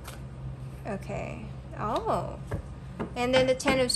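A card is laid down on a soft cloth.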